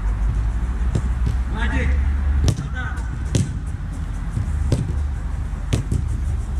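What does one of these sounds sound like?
A football is kicked with sharp thumps.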